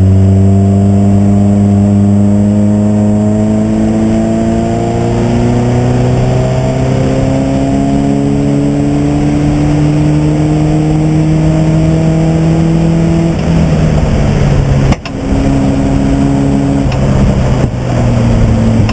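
A race car engine roars loudly from inside the cabin, its pitch slowly climbing and dropping with gear changes.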